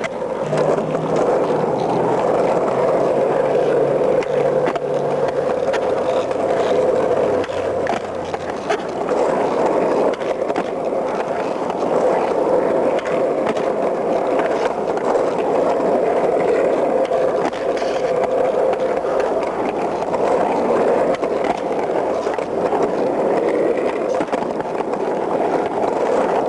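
Skateboard wheels roll and rumble over rough pavement.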